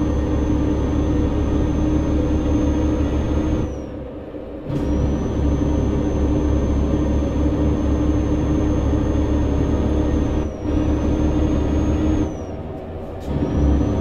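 A diesel truck engine drones from inside the cab while cruising on a highway.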